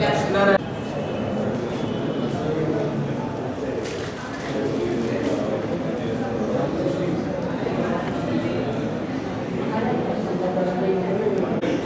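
An elderly man speaks.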